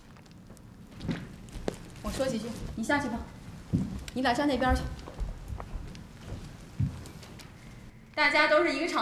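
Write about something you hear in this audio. A woman speaks through a microphone over a loudspeaker.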